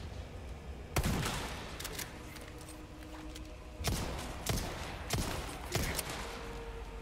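Gunshots fire in quick succession with a booming echo.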